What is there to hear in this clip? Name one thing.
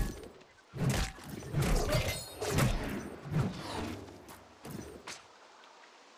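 Magic blasts and weapon hits crash in quick succession.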